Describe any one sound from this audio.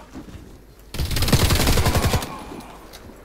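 An automatic rifle fires a rapid burst of shots.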